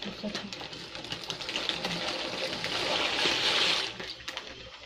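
Dry pasta rattles as it slides into a metal pot.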